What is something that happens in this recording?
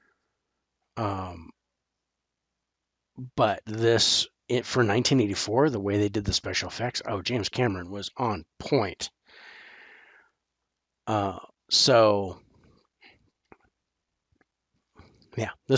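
A middle-aged man talks with animation into a close headset microphone.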